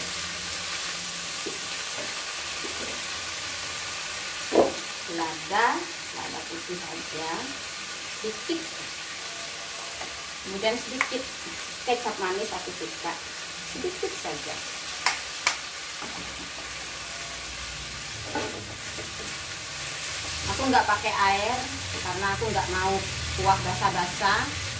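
A spatula scrapes and clinks in a frying pan.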